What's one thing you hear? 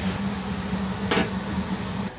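A metal lid clanks onto a pan.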